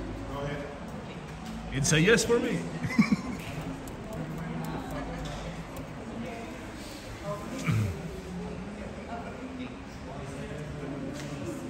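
A man and women talk and laugh.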